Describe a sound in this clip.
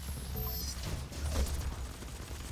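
An electric beam crackles and zaps.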